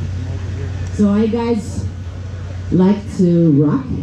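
A woman sings into a microphone, heard through loudspeakers.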